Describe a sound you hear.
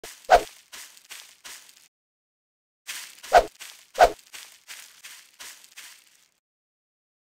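Footsteps thud steadily on soft ground.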